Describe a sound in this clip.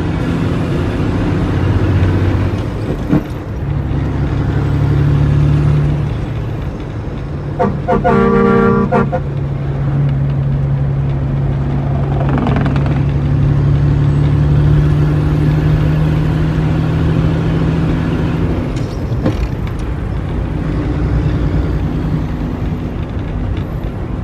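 A vehicle engine drones steadily from inside the cab while driving.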